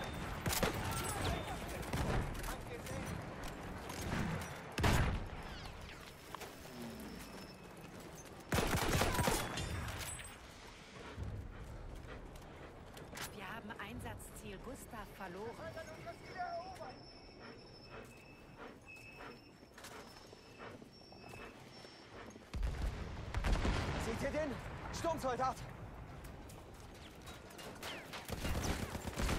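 Rifles and machine guns fire in sharp bursts.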